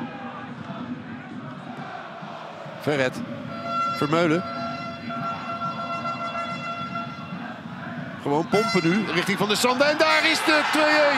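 A stadium crowd murmurs and chants in the distance.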